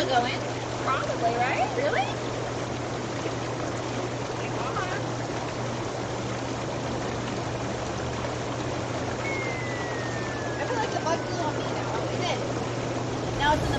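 Young women chat and laugh close by.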